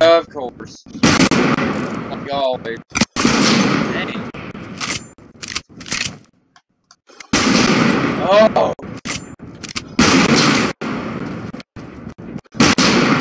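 A rifle fires a loud crack that echoes away.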